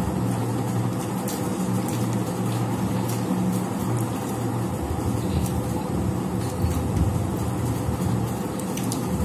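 Fingers squish and mix soft food on plates.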